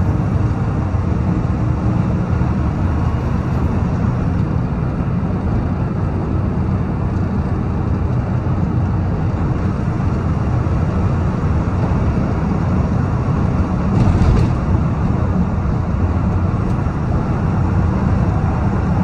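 Tyres roar on the highway.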